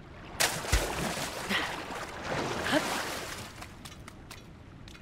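Water splashes and churns as someone swims.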